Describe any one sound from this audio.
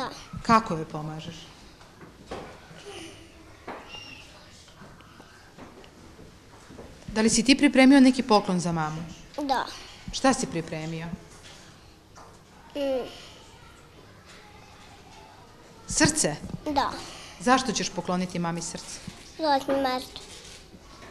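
A young boy speaks softly and hesitantly close by.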